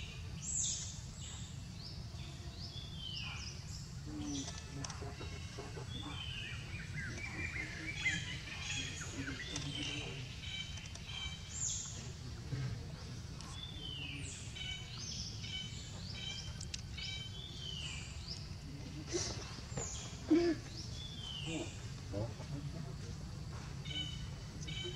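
A baby monkey squeaks with high, short chirps.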